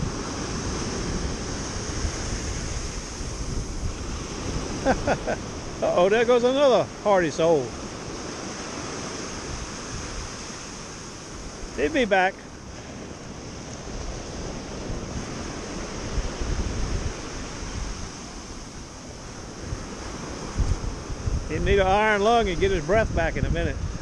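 Waves break and wash up on a shore.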